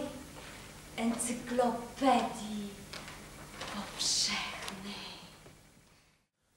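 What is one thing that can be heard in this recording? A young woman laughs softly and giggles.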